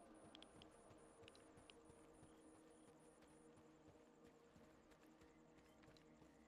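Footsteps crunch slowly over grass and dirt.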